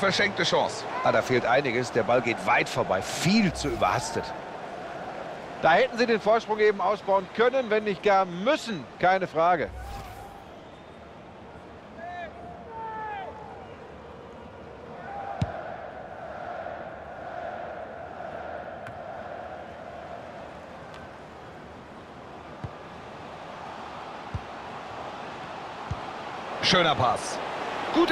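A large stadium crowd cheers and murmurs.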